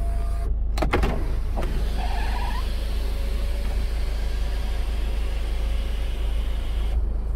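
An electric sunroof motor hums as the glass panel slides open.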